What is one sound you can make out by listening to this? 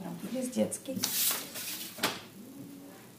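A paper card is picked up off a surface with a rustle.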